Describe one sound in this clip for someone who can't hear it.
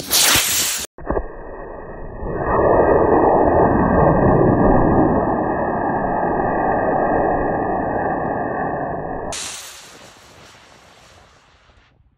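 A model rocket motor ignites with a loud roar that fades as the rocket climbs away.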